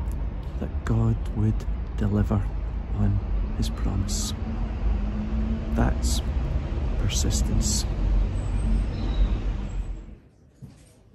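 An older man talks outdoors in wind.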